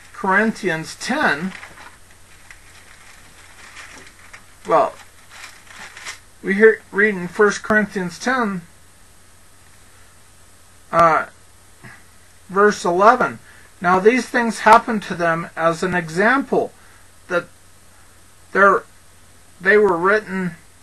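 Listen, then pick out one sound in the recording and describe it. A man speaks calmly into a close microphone, in phrases with pauses.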